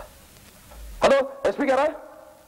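An elderly woman cries out in distress close by.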